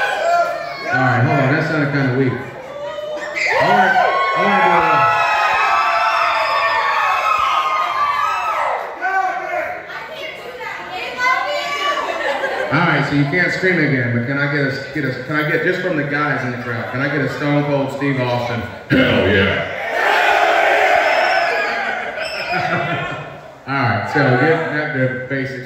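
A young man speaks with animation through a microphone and loudspeakers in a room.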